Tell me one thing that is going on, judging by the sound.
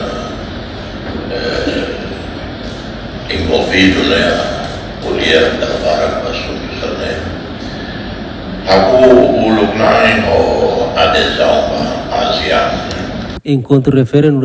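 An elderly man speaks calmly into a microphone.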